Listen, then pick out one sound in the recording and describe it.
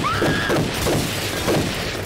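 Glass shatters and tinkles.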